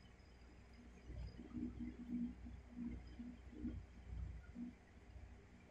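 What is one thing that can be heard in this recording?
A dog snores softly in its sleep.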